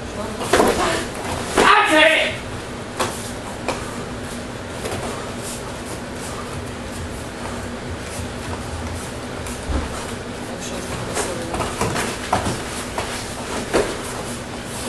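Kicks thud against padded body guards.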